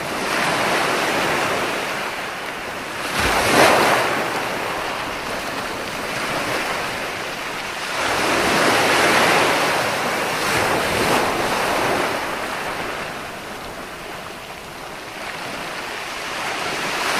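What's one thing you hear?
Ocean waves break and wash onto the shore in rolling surges.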